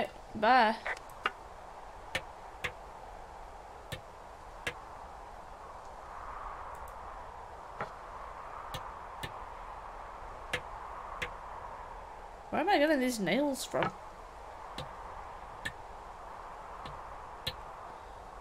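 A hammer knocks sharply on wooden boards, again and again.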